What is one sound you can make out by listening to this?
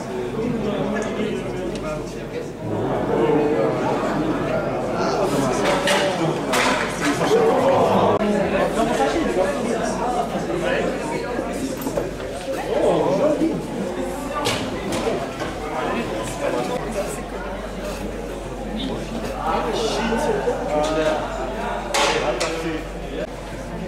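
A crowd of people chatter and call out in a large echoing hall.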